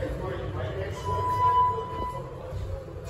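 An elevator chime dings once.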